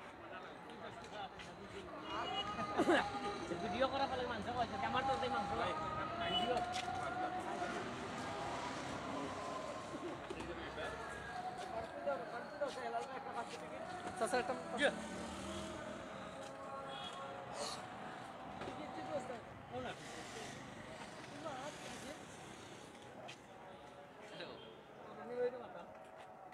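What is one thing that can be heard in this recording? Several men talk nearby with animation.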